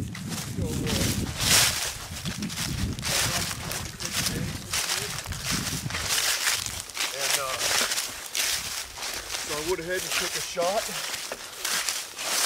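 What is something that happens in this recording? Footsteps crunch through dry fallen leaves.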